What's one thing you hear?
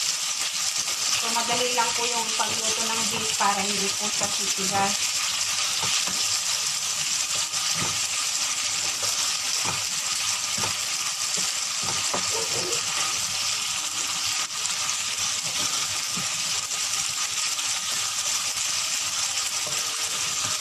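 A spatula scrapes and knocks against a frying pan.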